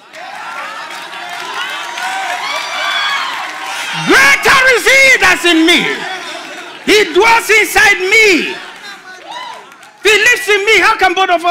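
A man preaches loudly into a microphone, shouting with energy in a large echoing hall.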